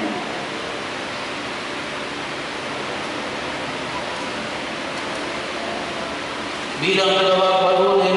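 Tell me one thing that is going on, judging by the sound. People murmur quietly in a large echoing hall.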